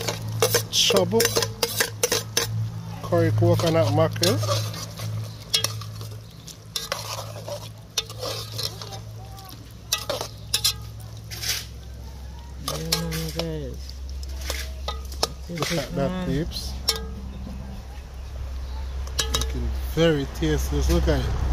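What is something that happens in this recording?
A metal ladle scrapes and clanks against a metal pot.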